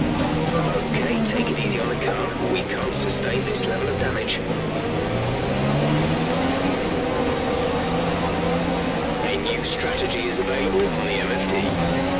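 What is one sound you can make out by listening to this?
Tyres squeal through slow corners.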